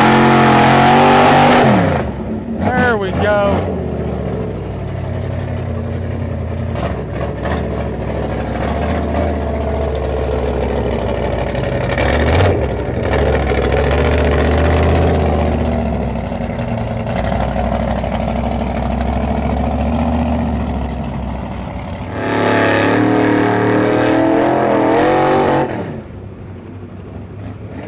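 Huge tyres churn and splash through deep mud.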